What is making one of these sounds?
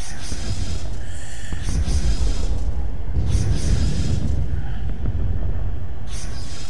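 Laser guns fire in repeated short bursts.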